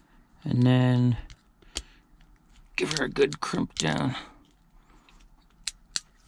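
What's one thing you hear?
A crimping tool clicks shut.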